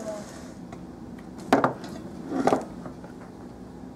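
A glass jar knocks against a metal pot.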